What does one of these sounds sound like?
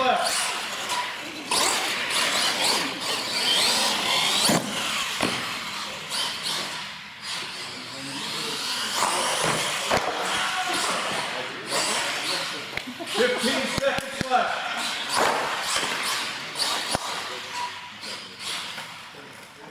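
Plastic tyres skid and rumble on a smooth floor.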